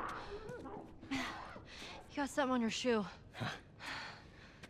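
A young woman speaks lightly, close by.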